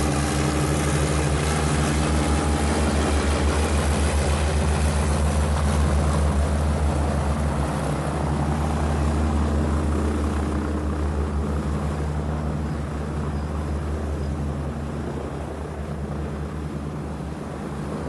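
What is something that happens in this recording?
Propeller engines drone loudly and steadily throughout.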